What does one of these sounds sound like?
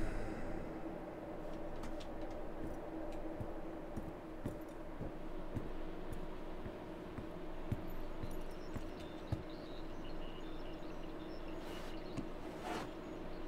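Heavy footsteps thud on a metal floor at a slow walking pace.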